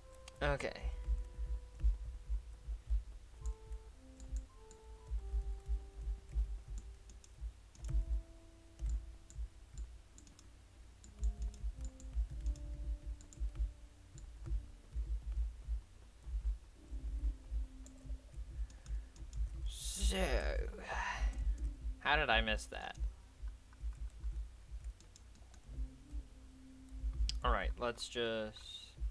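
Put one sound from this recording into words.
Low tones of game music play.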